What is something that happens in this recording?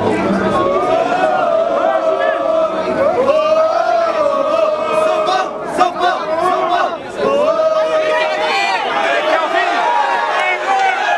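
A crowd of fans chants and sings loudly.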